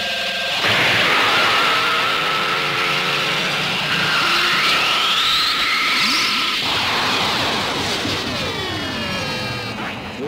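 An energy blast crackles and hums loudly.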